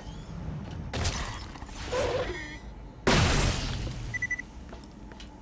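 A gun fires a loud electric blast.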